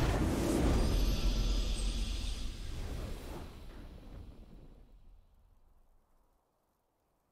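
A triumphant game fanfare plays loudly and slowly fades away.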